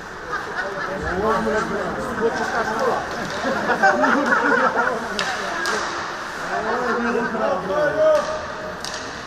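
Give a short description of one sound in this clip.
Voices echo through a large hall.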